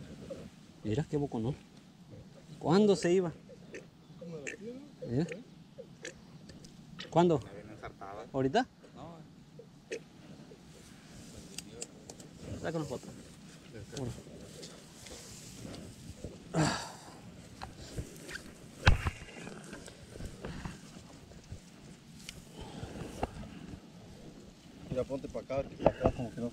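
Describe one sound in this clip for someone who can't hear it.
A fishing net rustles against grass as a fish is handled.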